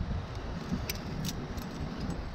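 Metal climbing gear clinks.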